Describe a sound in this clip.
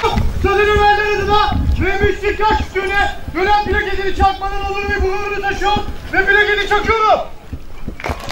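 A young man shouts loudly into a microphone over loudspeakers, outdoors.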